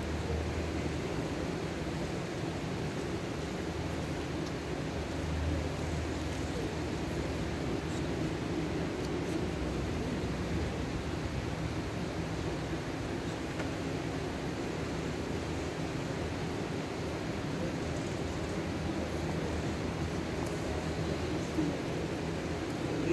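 An electric fan whirs steadily in a large echoing hall.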